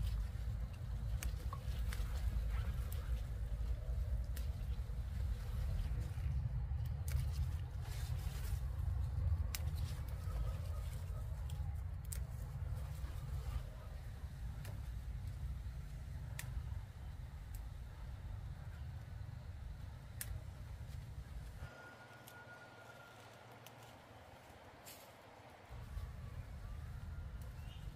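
Tomato stems snap softly as the fruit is picked by hand.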